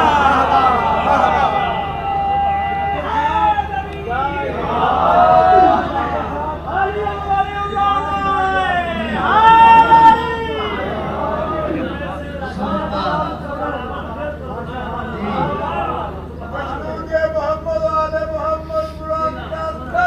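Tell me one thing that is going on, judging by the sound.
A man recites in a loud, sustained singing voice through a microphone and loudspeakers.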